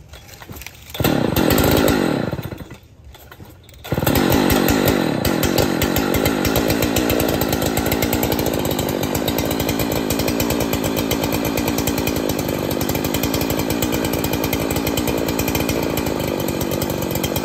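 A chainsaw engine revs up and then runs loudly at a steady idle.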